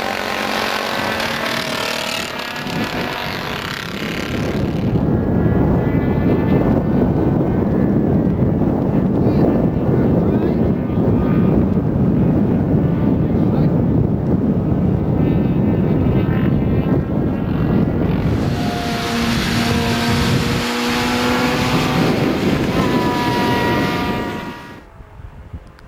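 Several motorcycle engines roar and whine as they race past.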